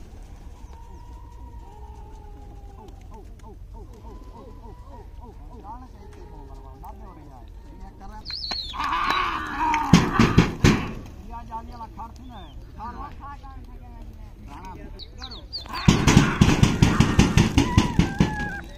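Many gulls call and squawk nearby.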